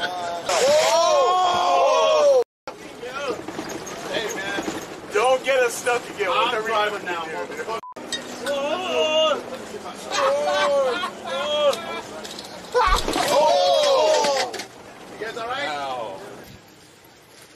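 Several men talk and shout loudly, close by.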